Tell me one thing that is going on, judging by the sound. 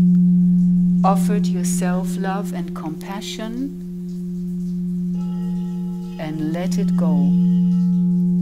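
A woman speaks calmly and softly into a microphone.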